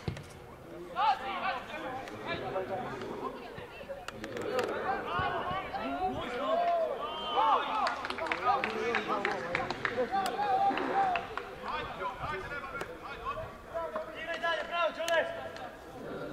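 Young men shout and call out across an open outdoor pitch.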